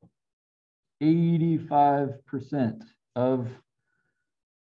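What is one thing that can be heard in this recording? A middle-aged man speaks calmly through a microphone on an online call.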